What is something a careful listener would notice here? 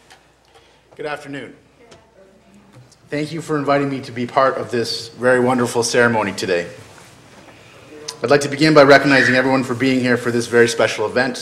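A man speaks calmly into a microphone, in a room with a slight echo.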